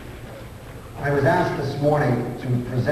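A man speaks into a microphone, heard in an echoing hall.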